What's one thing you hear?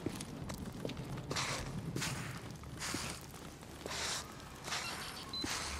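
Clothing and gear rustle as a person crouches and crawls.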